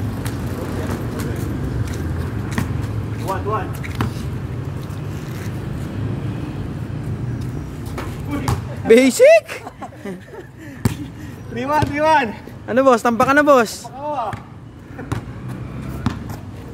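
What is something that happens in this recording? A basketball bounces on concrete outdoors.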